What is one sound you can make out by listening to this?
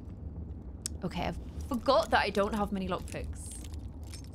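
A young woman speaks briefly and with animation into a microphone.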